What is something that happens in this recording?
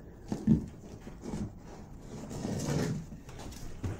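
A small dog tugs and shakes a toy, thumping and scraping it on a wooden floor.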